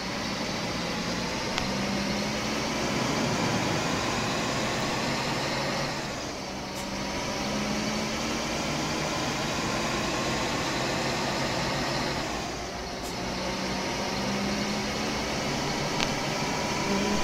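A bus engine hums steadily as the bus drives along a road.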